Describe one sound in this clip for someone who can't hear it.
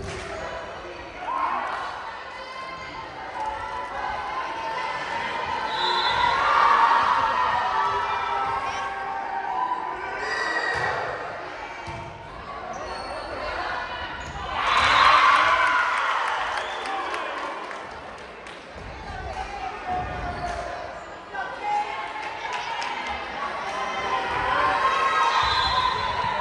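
A crowd of spectators cheers and shouts in a large echoing gym.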